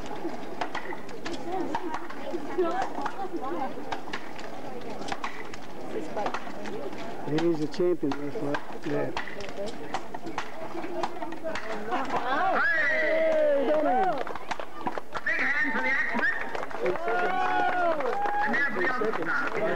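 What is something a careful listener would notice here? Axes chop into wooden blocks with repeated sharp thuds, outdoors.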